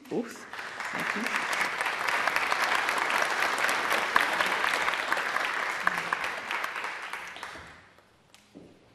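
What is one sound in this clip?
Applause rings out in a large echoing hall and then fades away.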